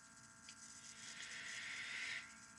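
A young man draws on a vaping device with a soft hiss.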